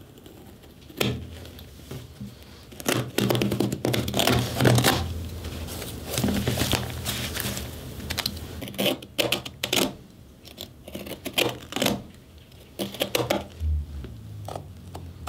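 A tool scrapes and scratches against a shoe.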